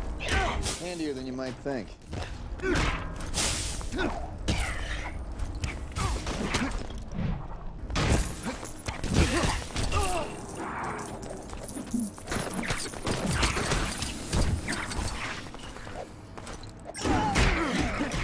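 Energy blasts zap and crackle repeatedly.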